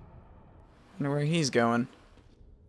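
A young man sings a short drawn-out note into a microphone.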